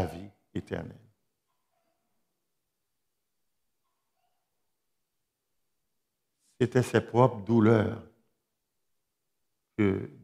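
An older man speaks calmly through a microphone, pausing between phrases.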